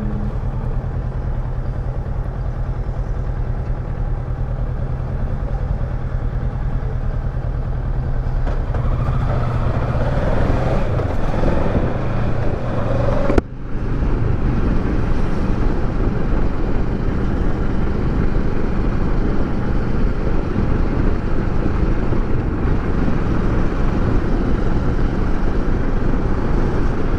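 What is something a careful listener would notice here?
A motorcycle engine rumbles steadily and revs higher as it speeds up, then drops briefly at a gear change.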